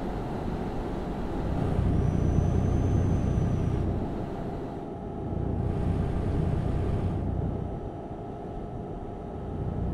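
A truck engine drones steadily while driving on a highway.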